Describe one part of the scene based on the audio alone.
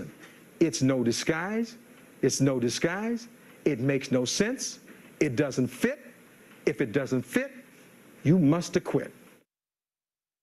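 A man speaks forcefully through a microphone.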